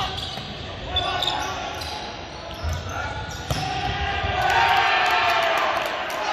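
Young men shout and call out across an echoing hall.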